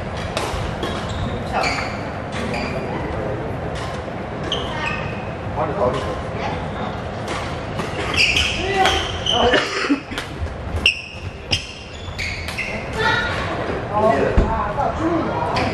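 Court shoes squeak and thud on a wooden floor.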